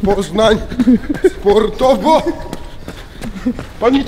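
Footsteps hurry over paving stones.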